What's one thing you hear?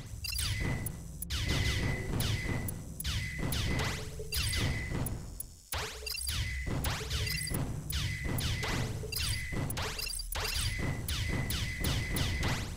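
Rapid electronic laser shots fire again and again, with falling zaps.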